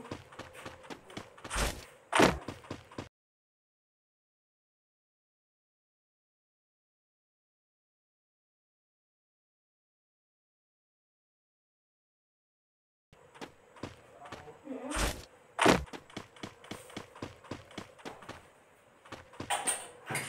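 Game footsteps run over grass.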